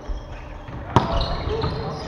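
A volleyball is struck with a sharp slap in a large echoing gym.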